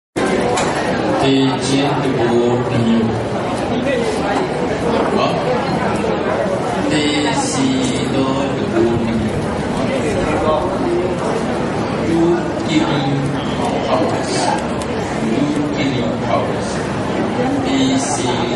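A man speaks steadily through a microphone and loudspeakers, in a reverberant hall.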